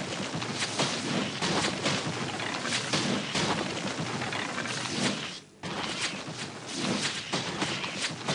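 A spell bursts with a whooshing puff.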